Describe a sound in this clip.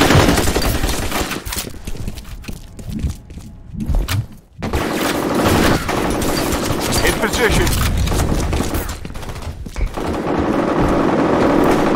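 Gunshots ring out in a video game.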